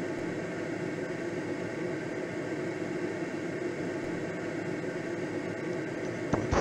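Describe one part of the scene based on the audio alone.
Wind rushes steadily past a gliding aircraft.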